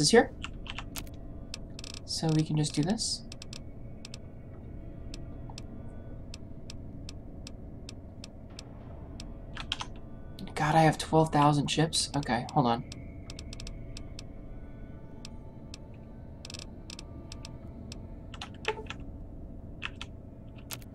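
Soft menu clicks tick repeatedly as items are scrolled through.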